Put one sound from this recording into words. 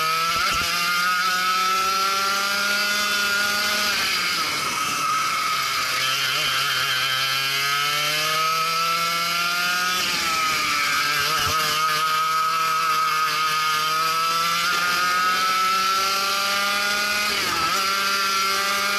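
A kart engine buzzes loudly up close, its pitch rising and falling as it speeds up and slows down.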